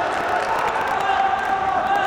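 A ball is kicked hard.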